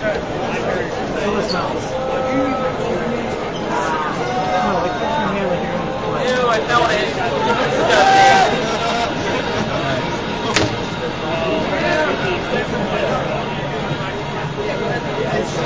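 A young man types on a keyboard and clicks a mouse.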